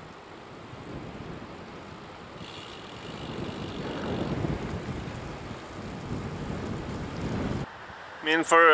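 Wind rushes and buffets loudly past while riding along a road.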